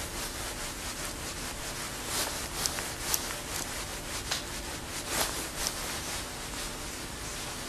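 A man speaks calmly and steadily into a microphone.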